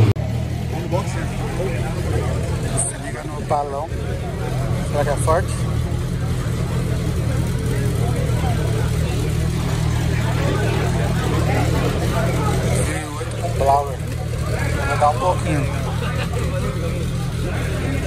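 A race car engine idles with a loud, steady rumble close by.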